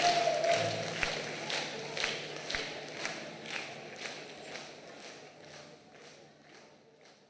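An audience claps together in a steady rhythm.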